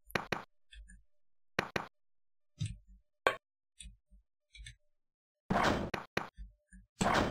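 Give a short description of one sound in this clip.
Footsteps in a video game tap sharply.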